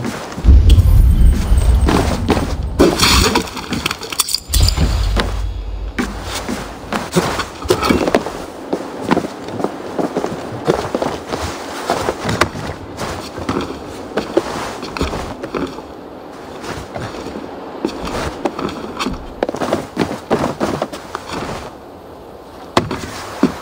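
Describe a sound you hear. Footsteps thud on wooden planks and boards.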